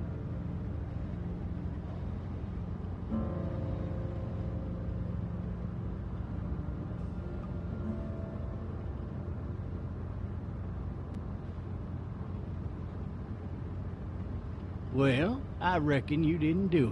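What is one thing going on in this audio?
Road noise rumbles inside a moving car.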